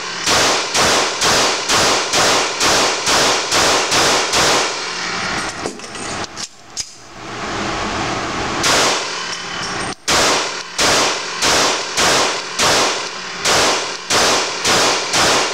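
A pistol fires rapid, sharp shots that ring in an echoing indoor range.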